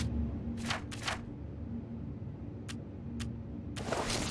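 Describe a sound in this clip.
Soft clicks sound as menu items are selected.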